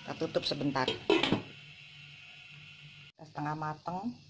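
A lid clinks against a pan.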